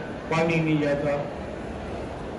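An elderly man speaks slowly into a microphone, heard through loudspeakers.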